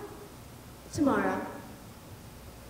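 A young boy speaks a short line with expression.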